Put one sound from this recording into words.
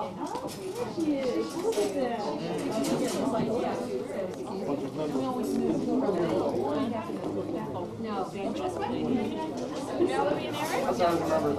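Several adults chatter in the background of a room.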